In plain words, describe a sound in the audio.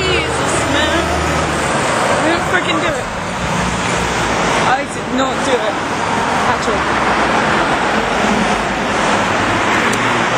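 A crowd chatters loudly in a noisy room.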